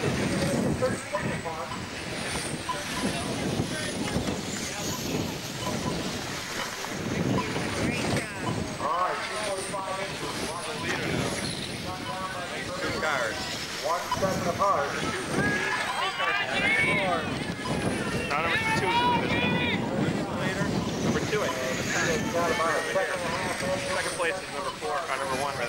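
Small model race cars whine at high speed.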